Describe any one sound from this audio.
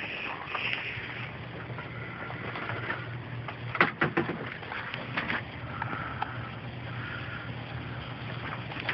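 A water pump hums steadily.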